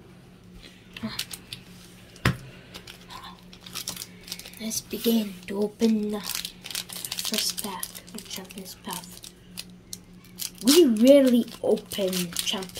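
A foil card pack crinkles and tears as hands open it.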